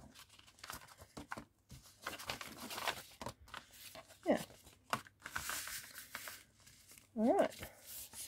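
Paper crinkles and rustles as it is handled.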